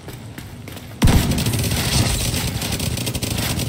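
A rifle fires loud rapid shots.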